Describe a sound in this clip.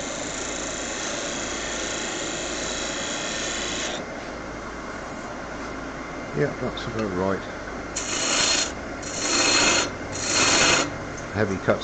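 A chisel scrapes and hisses against spinning wood in short bursts.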